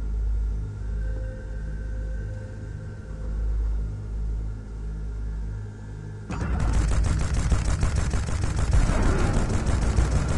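A spaceship engine hums with a low, steady rumble.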